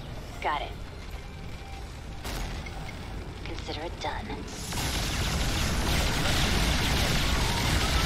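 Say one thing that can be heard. Gunfire and explosions rattle and boom, growing louder.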